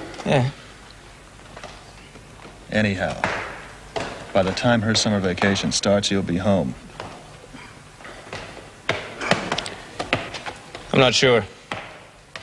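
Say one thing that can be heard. A young man talks quietly close by.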